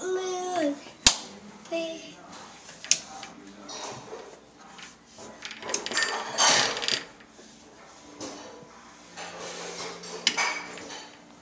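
A metal baby gate rattles as a young boy pushes on it.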